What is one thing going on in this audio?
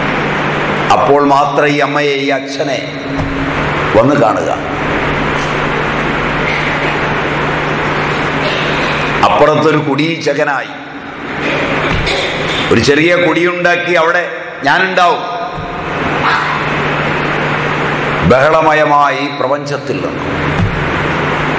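A middle-aged man speaks calmly nearby, in short bursts with pauses.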